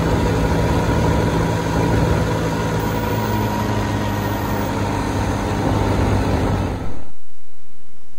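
A small plane's engine roars close by as it flies low past.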